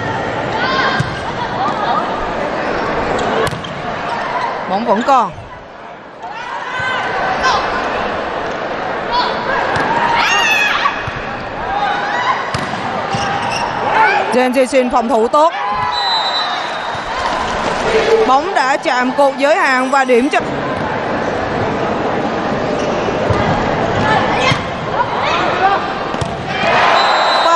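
A large crowd cheers and chants in a big echoing hall.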